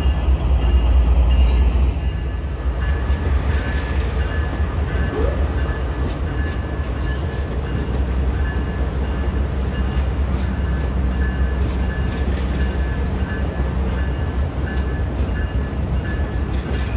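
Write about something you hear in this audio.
A diesel locomotive engine rumbles low and steadily.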